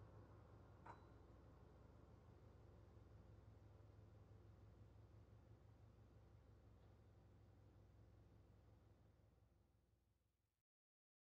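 Piano notes ring out and slowly die away.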